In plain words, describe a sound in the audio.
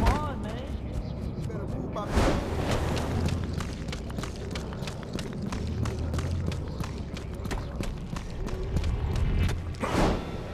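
A game character runs up a building wall with quick footfalls.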